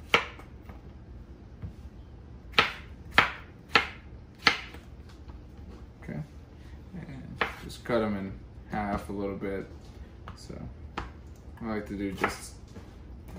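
A knife chops sharply against a wooden board.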